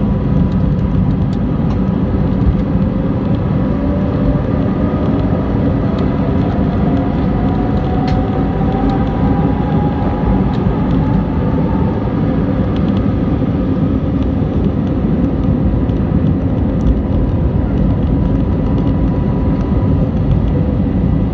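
Jet engines roar loudly as an airliner speeds down the runway and takes off.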